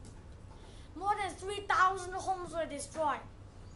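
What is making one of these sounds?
A boy speaks clearly and steadily in a room.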